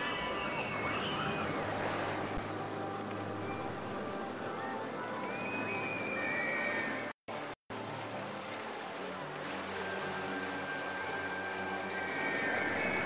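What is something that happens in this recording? Roller coaster cars rumble and clatter along their tracks.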